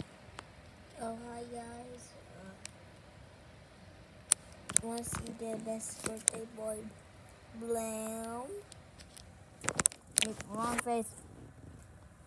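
A young child talks close to the microphone.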